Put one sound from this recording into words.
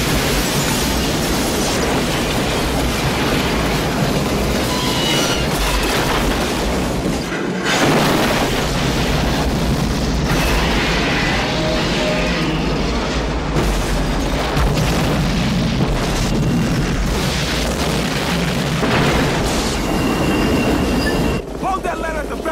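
Explosions boom and flames roar loudly.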